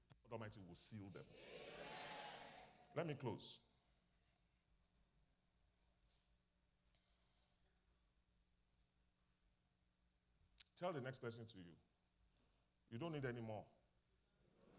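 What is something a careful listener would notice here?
A man speaks slowly and emphatically into a microphone, with long pauses.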